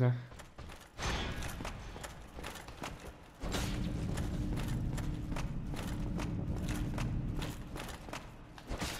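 A sword clashes against armour.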